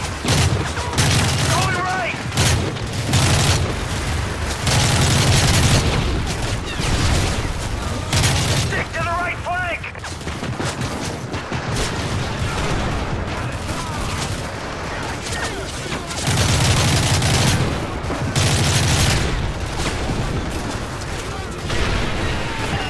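Rifle shots fire in loud, rapid bursts.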